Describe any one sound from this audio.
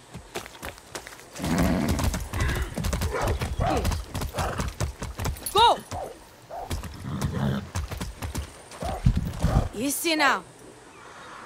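Horse hooves clop on a wet dirt track.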